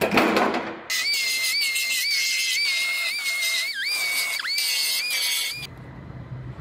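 A grinding tool whines loudly against metal.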